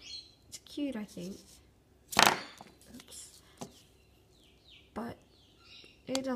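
A small plastic figure is handled and knocks lightly against a surface.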